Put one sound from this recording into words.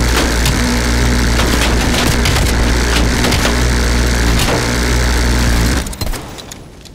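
A heavy machine gun fires in a fast, roaring burst.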